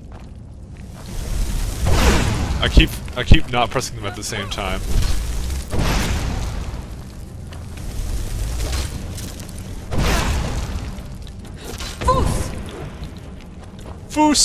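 Fire spells roar and crackle in bursts.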